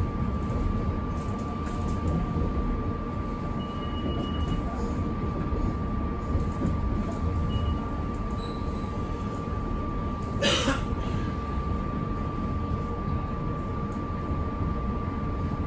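Train wheels clatter over rail joints and switches.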